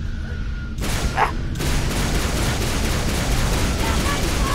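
A plasma weapon fires rapid crackling shots.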